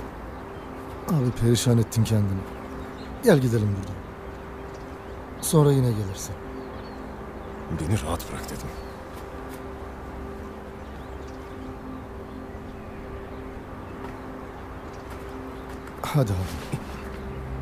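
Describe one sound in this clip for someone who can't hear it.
A man speaks calmly and gently close by.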